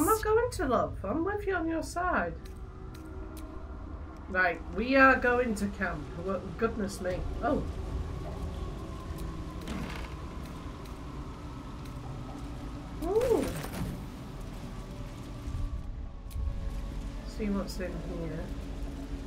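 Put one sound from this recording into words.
A young woman talks casually into a close microphone.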